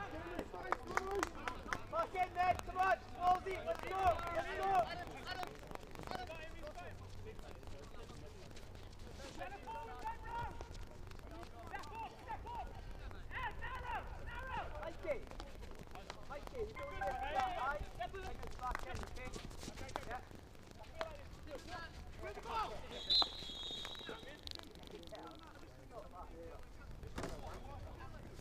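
Men shout and call out to each other across an open field.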